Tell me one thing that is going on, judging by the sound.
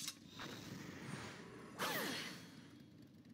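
A magic spell whooshes and shimmers.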